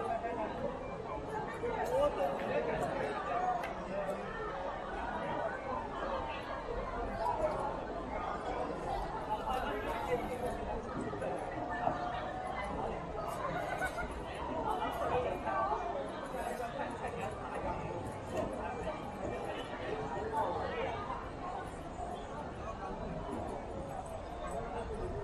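A crowd chatters steadily in the background outdoors.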